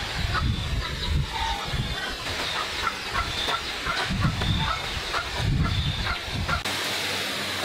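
A pencil scratches across wood.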